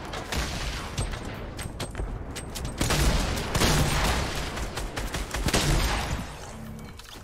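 Building pieces clatter and thud in a video game.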